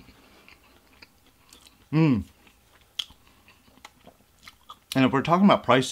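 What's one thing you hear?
A young man chews food with soft smacking sounds close to a microphone.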